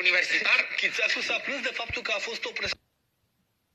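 A man talks with animation, heard through a television broadcast.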